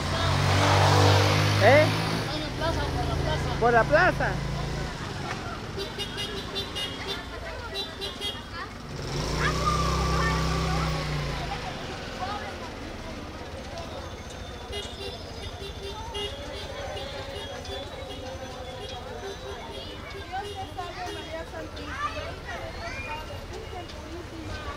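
A crowd of children and women chatter while walking outdoors.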